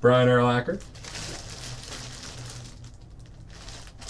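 A plastic sleeve crinkles as it is handled.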